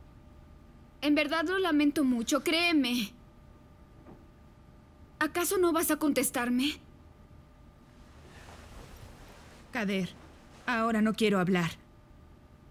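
A young woman speaks close by in a tense, worried voice.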